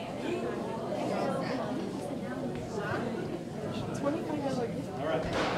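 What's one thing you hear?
Several adults chatter at once in a large echoing hall.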